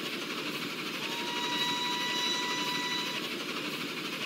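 A steam train whistle blows in one steady long note.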